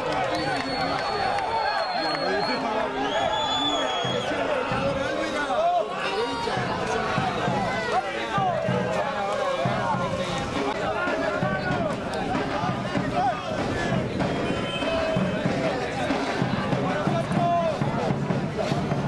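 Several men shout and talk loudly at a distance outdoors.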